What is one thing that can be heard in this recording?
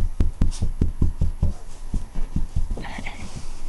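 A hand pats soft bedding with dull thumps.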